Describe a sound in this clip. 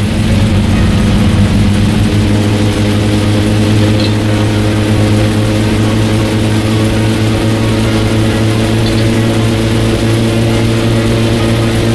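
Tyres roll over asphalt.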